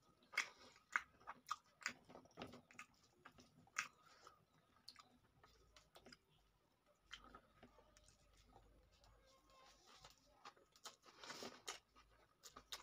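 Fingers squish and mix rice on a plate, close up.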